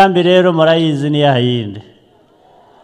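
A man speaks loudly and with animation through a microphone and loudspeakers.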